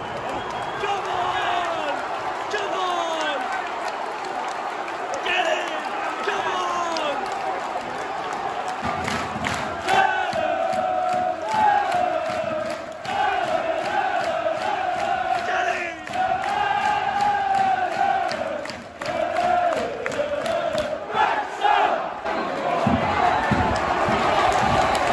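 A large stadium crowd sings and chants loudly in unison.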